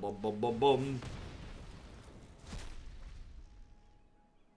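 A fiery magical blast whooshes and crackles.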